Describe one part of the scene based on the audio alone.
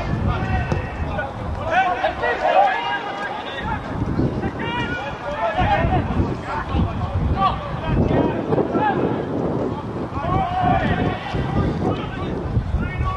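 Men shout and call out to each other across an open pitch.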